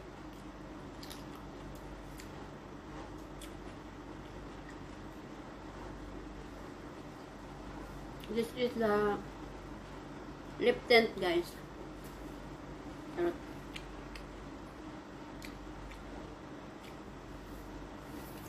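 A young woman chews crunchy food close by.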